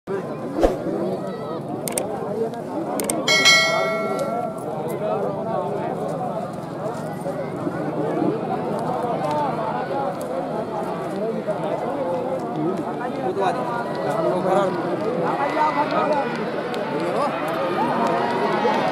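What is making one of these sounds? A large outdoor crowd chatters and shouts at a distance.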